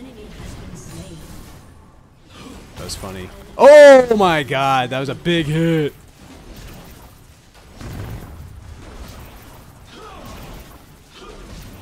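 Magic spells and weapon blows clash in a fast, busy fight.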